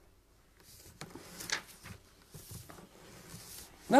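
An elderly man reads aloud calmly into a close microphone.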